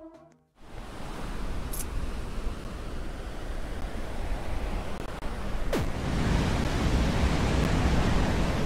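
A rushing wave of water roars and swells.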